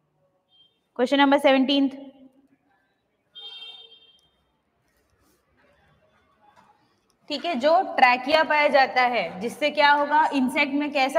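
A young woman speaks clearly into a microphone, explaining with animation.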